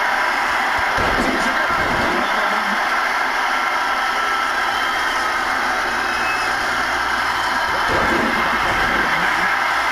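Heavy bodies slam onto a wrestling ring mat with loud thuds.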